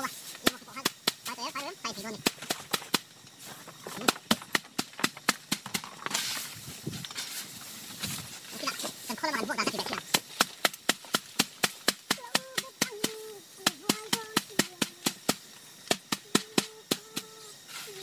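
Dry plant stalks are struck in quick, sharp slaps.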